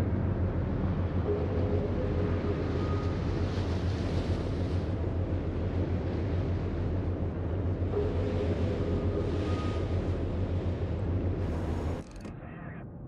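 Waves splash against a ship's hull.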